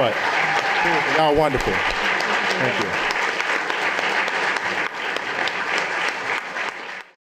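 An audience applauds in a large hall.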